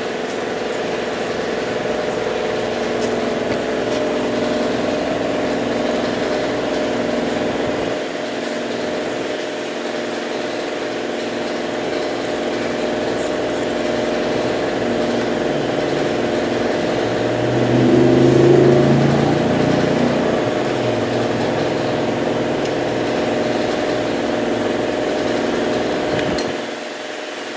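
An engine idles with a steady hum close by.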